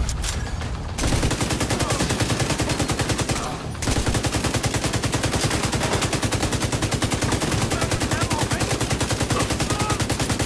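An automatic rifle fires rapid bursts.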